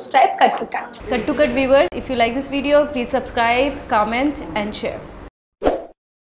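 Another young woman speaks calmly close to a microphone.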